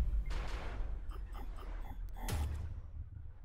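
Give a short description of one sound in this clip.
Electronic ticks and chimes tally up a score rapidly.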